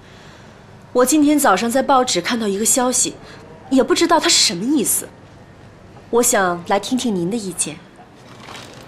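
A woman speaks calmly and politely, close by.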